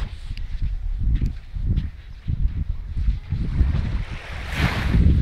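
Wind blows in gusts outdoors.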